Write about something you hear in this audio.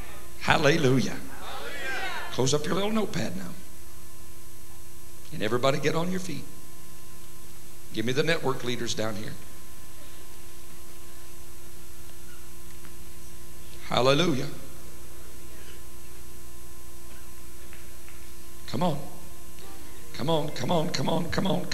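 A man speaks with animation into a microphone in a large echoing hall, in short bursts with pauses.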